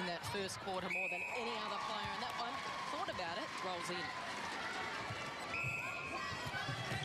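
An umpire blows a sharp whistle.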